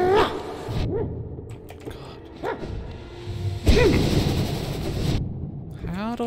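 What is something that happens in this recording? A large orb bursts with a loud blast.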